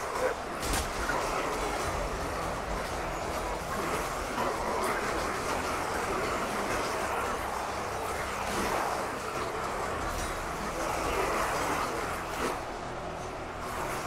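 A vast battle roars with a dense, constant din.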